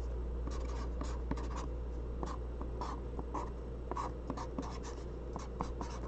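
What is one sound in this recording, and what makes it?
A felt-tip marker squeaks and scratches across a card.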